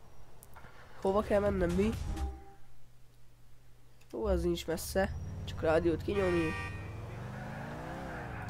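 A car engine starts and revs.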